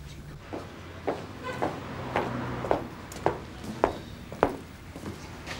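Footsteps walk across a paved path outdoors.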